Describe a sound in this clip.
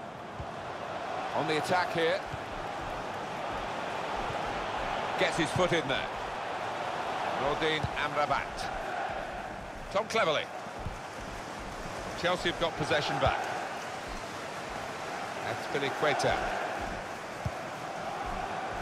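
A large stadium crowd murmurs and chants steadily in the distance.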